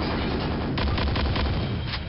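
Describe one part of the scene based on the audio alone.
An electric beam weapon crackles and hums.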